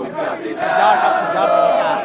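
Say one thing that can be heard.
A young man shouts close by.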